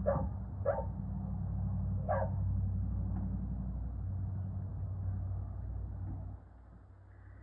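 Air hisses steadily through a hose into a tyre.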